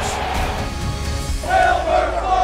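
A crowd of men cheers and shouts close by.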